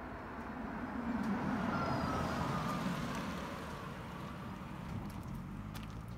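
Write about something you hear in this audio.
A car passes close by and its engine noise fades into the distance.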